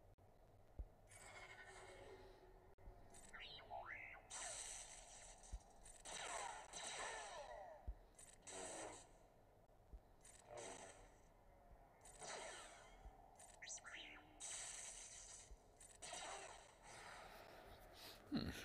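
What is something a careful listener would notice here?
Energy blasts whoosh and crackle during a fight.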